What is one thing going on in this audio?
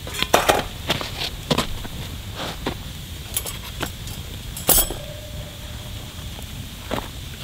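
A wood fire crackles and pops.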